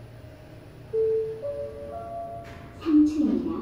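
An elevator chime rings in rising tones.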